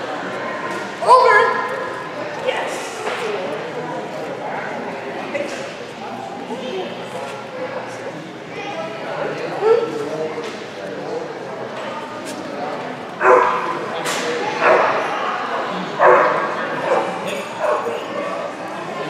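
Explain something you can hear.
A woman speaks to a dog with animation, her voice echoing in a large hall.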